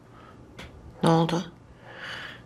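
A woman speaks quietly close by.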